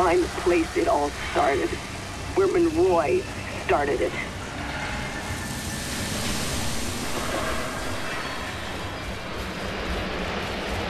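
Wind blows steadily through a dust storm.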